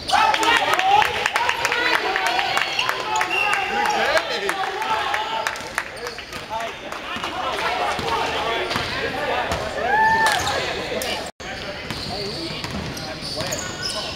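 Several men shout and call out across a large echoing gym.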